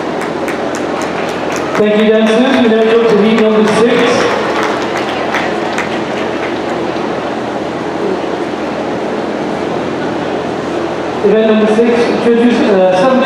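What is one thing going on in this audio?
A crowd cheers and whoops in a large echoing hall.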